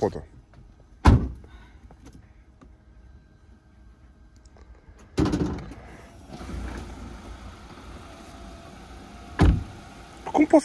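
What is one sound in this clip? A car door slams shut with a thud.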